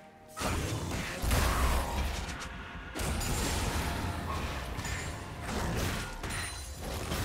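Video game spell blasts and weapon hits crash and crackle in a busy fight.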